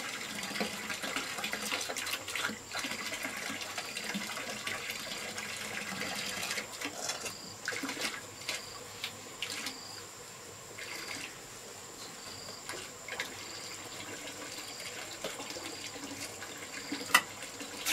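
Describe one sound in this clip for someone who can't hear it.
Wet mortar squelches and scrapes as a gloved hand presses it into place.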